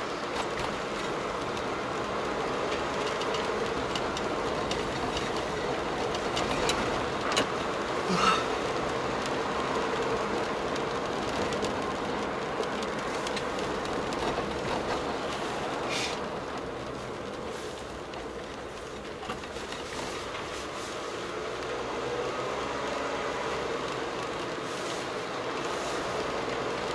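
A car's engine hums and its tyres roll steadily on the road, heard from inside.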